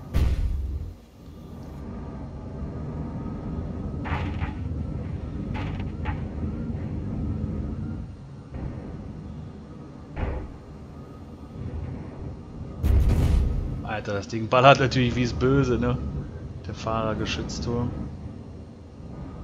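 A vehicle's engine rumbles low and steady.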